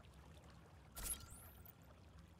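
A short interface whoosh and click sound as a menu option is selected.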